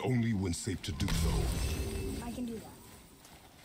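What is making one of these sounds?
A burst of magic whooshes.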